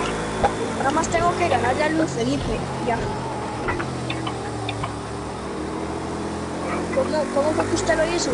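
A racing car engine drones steadily, shifting pitch with the gears.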